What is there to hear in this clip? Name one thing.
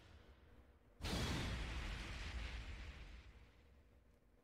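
A deep whoosh rushes in and fades away.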